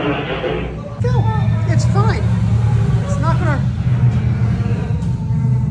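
A young girl squeals excitedly nearby.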